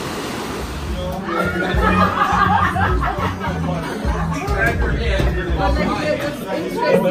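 Voices chatter in a noisy, crowded room.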